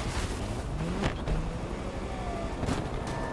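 Leaves and branches crash against a car.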